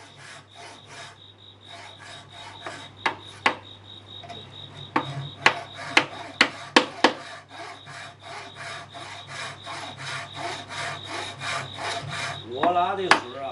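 Light, quick tapping of a mallet on a chisel goes on steadily.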